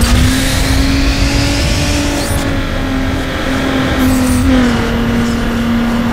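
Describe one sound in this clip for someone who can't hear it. A car engine roars steadily at high speed, its pitch shifting slightly with gear changes.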